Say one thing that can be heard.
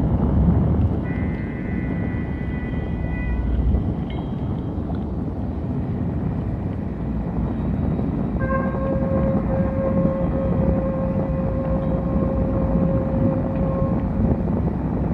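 Sustained synthesizer tones ring out and hold before fading.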